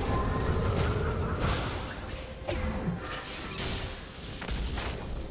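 Magic spells whoosh and strikes thud in a fast game battle.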